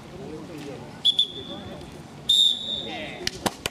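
A referee's whistle blows sharply, twice.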